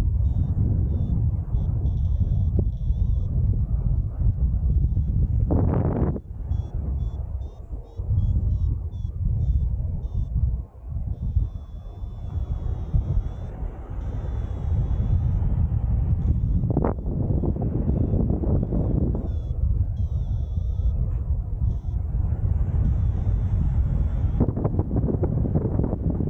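Wind rushes loudly past a microphone, outdoors in flight.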